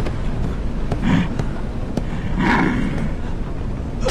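Men shout and grunt as they struggle close by.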